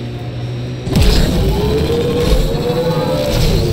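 Water splashes under heavy wheels.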